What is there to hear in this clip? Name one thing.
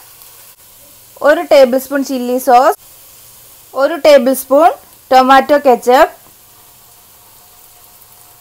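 Thick sauce glops into a hot pan.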